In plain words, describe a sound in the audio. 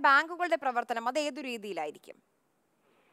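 A young woman speaks clearly into a microphone.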